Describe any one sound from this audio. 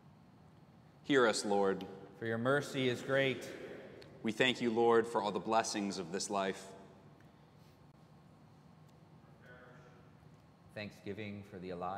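A man speaks slowly and solemnly through a loudspeaker in a large echoing hall.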